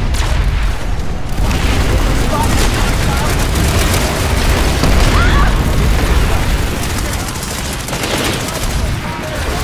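Laser weapons zap repeatedly.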